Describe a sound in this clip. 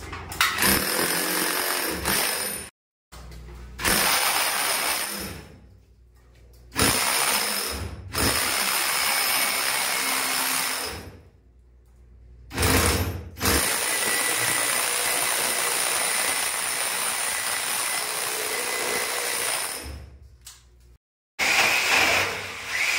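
A power drill grinds loudly into a wall in bursts.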